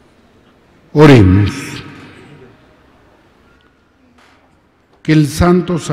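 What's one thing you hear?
A man sings a chant into a microphone in a large echoing church.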